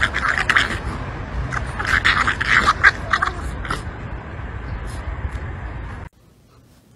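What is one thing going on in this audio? Two puppies growl and yip as they wrestle close by.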